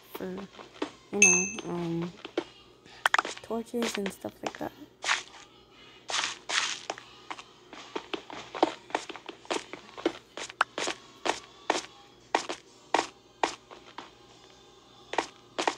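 A pickaxe chips and crunches through stone in short, repeated strikes.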